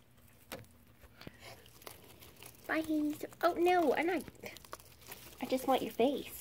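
A guinea pig chews hay with soft crunching.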